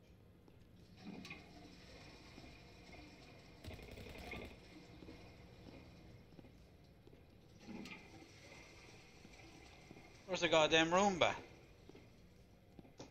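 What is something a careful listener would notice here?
A toilet flushes with a rushing of water.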